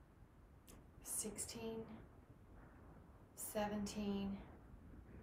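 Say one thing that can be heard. A woman speaks calmly to the listener, close by.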